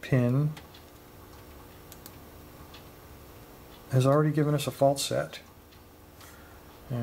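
A metal pick scrapes and clicks softly inside a lock.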